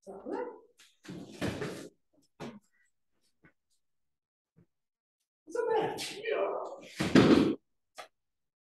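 Bodies thump and slap onto a padded floor as people are thrown.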